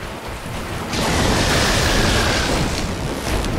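Lightning crackles and sizzles close by.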